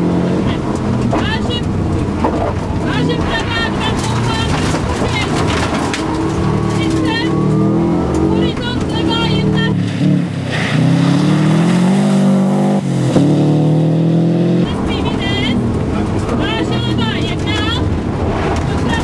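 A rally car engine roars and revs hard up close.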